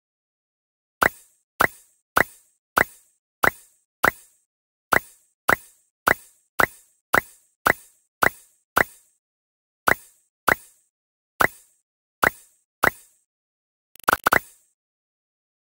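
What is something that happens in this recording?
A mobile game plays short bright chimes in quick succession.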